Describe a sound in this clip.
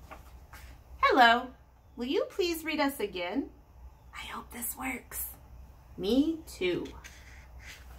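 A woman reads aloud close by, in an expressive, animated voice.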